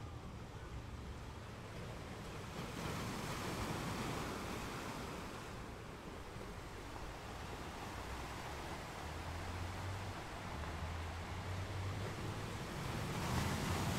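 Waves wash and break on the shore below.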